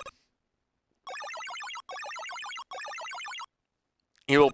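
Electronic video game sound effects warble rapidly in quick bursts.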